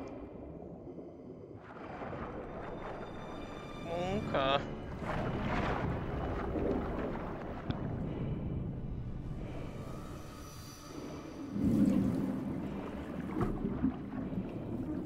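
A deep underwater rumble drones steadily.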